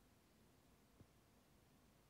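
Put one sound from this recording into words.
A small block is set down with a tap on a cutting mat.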